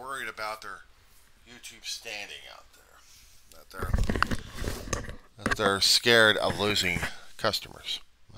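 A headset rustles and knocks as a man puts it on.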